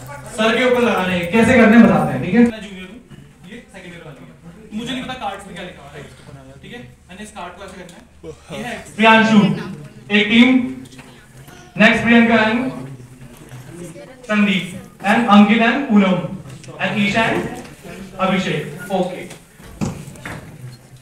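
A young man speaks with animation through a microphone and loudspeaker in an echoing hall.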